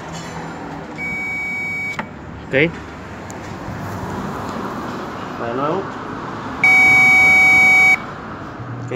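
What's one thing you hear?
An electronic circuit tester beeps with a steady high tone.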